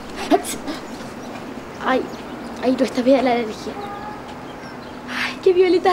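A young girl speaks with animation nearby.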